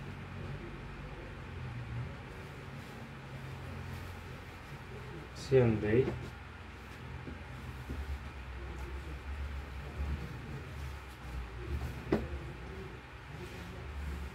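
Fabric rustles softly as clothes are laid flat.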